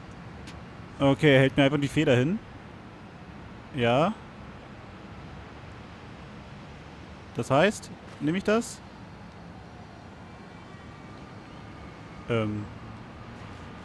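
A man speaks calmly at close range, in short phrases with pauses.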